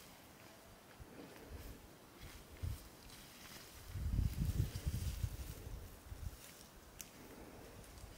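Leaves rustle and snap as a woman picks greens.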